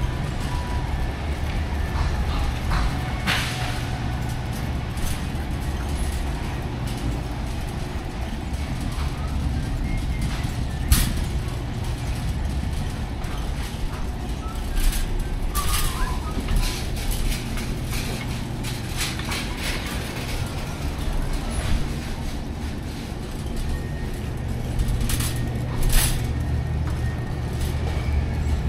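A shopping cart rattles as it rolls over a smooth floor.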